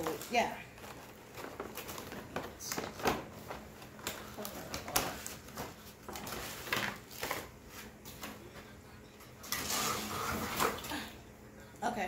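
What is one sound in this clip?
Plastic packaging crinkles and rattles.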